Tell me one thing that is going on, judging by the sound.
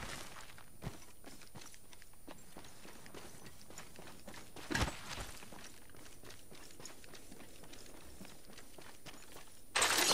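Footsteps run over grass and gravel.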